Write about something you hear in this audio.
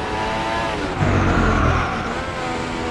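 A racing car crashes with a loud thud.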